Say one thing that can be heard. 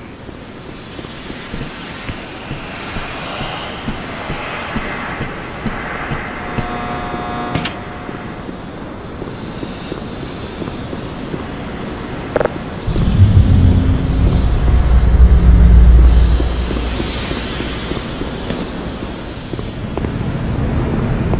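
Footsteps clank on metal.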